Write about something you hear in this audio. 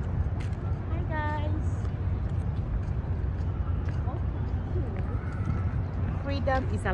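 A young woman exclaims brightly close by.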